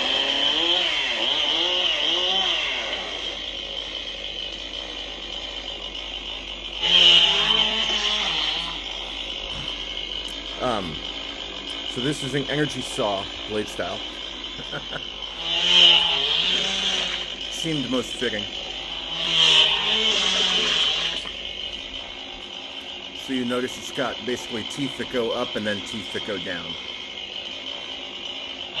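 A toy lightsaber hums steadily with a high buzz.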